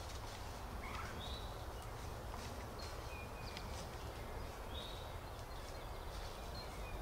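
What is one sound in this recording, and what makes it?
Wild turkeys gobble and cluck nearby.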